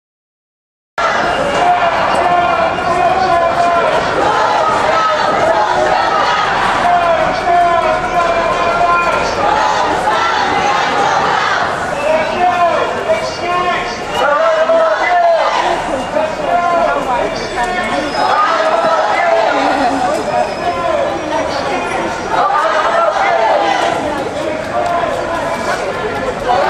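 Many voices of men and women chatter nearby.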